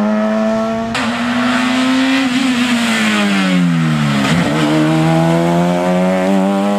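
Tyres hiss on the tarmac as a car rushes by.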